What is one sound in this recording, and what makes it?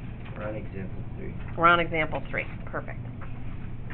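A sheet of paper rustles as it is turned.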